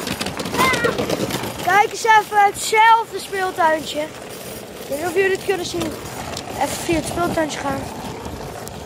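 A young boy talks excitedly close to the microphone.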